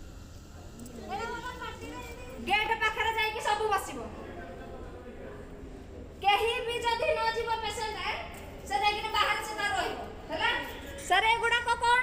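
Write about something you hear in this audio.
A woman speaks loudly and agitatedly, close by.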